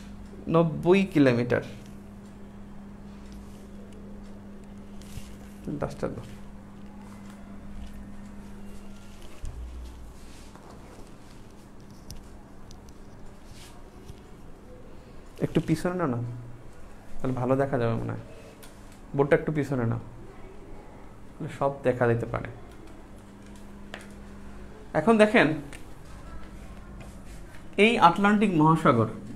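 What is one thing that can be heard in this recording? A man speaks calmly and clearly in short bursts, as if teaching.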